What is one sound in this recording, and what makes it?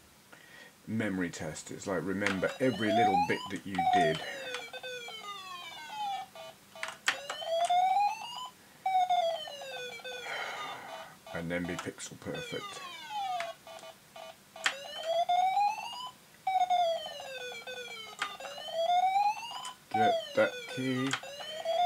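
Electronic game sound effects chirp and sweep up and down in pitch.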